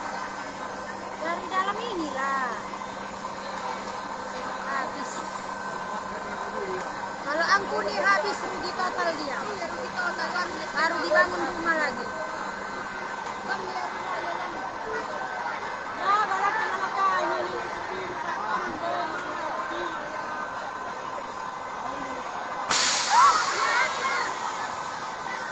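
A crowd of men and women shouts and calls out excitedly from a distance.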